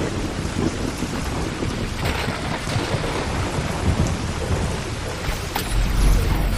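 Steady rain falls and hisses.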